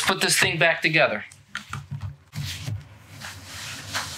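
A cardboard box knocks down onto a table.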